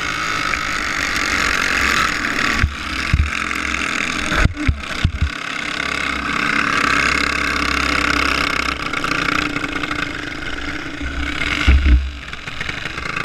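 A kart engine buzzes loudly up close, revving as it speeds along.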